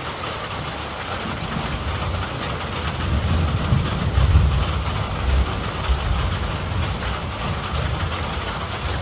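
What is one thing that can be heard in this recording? Gusts of wind rumble and rise, then ease off.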